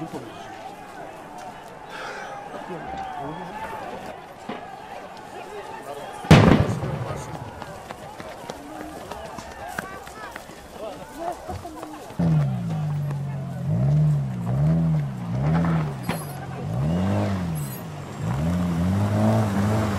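A large crowd shouts and clamours outdoors.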